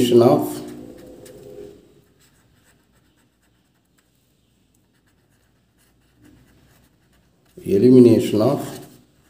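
A felt-tip pen squeaks softly across paper.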